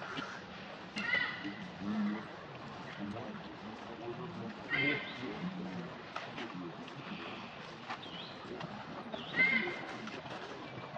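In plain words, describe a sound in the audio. A baby monkey squeaks in short, high cries.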